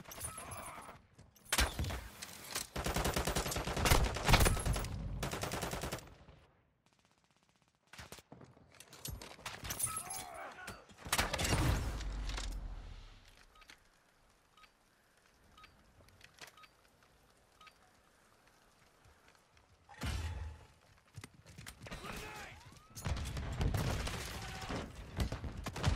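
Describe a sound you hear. A crossbow fires with a sharp snap.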